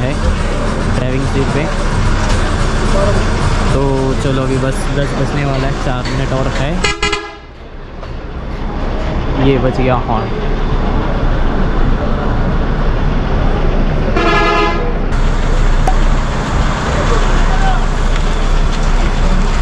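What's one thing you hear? A bus engine idles steadily nearby.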